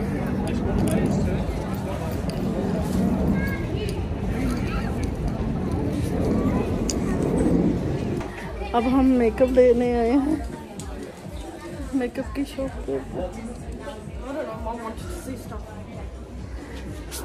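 A middle-aged woman talks close to the microphone.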